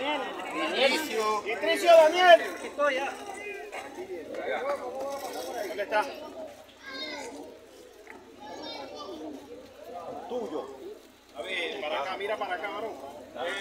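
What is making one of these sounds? Several men and women talk over one another nearby, outdoors.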